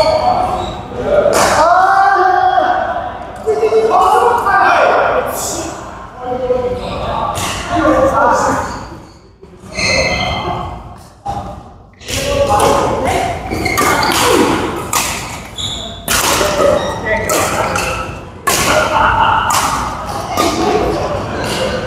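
Men talk and call out across a large echoing hall.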